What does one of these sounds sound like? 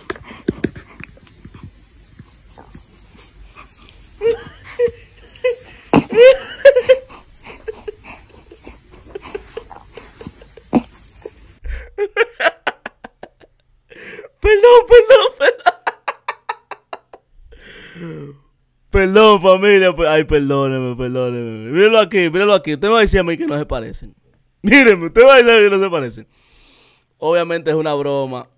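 A young man talks and laughs with animation into a close microphone.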